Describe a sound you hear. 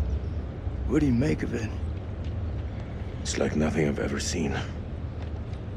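A young man speaks in a low, calm voice.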